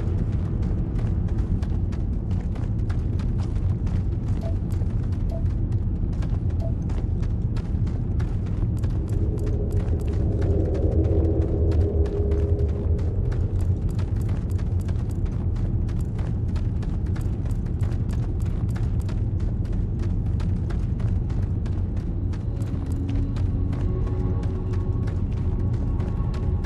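Footsteps crunch steadily on gravelly ground.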